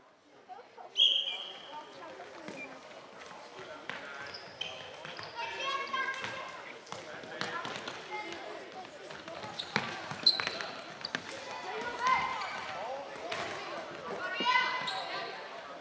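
Young players shout and call out across a large echoing hall.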